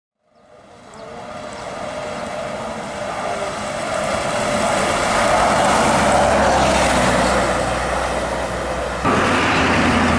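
A bus engine roars as the bus approaches and passes close by.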